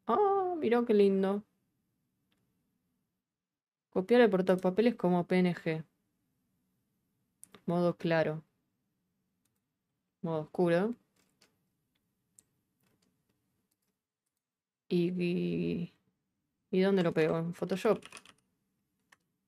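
A young woman talks calmly into a close microphone, in short bursts.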